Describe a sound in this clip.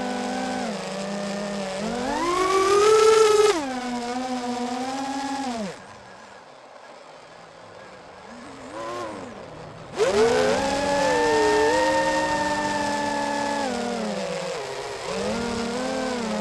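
A drone's motors whine loudly, rising and falling in pitch as the throttle changes.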